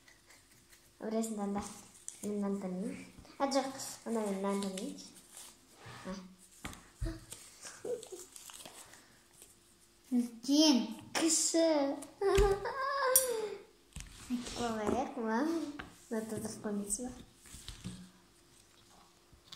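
A young girl talks and giggles close by.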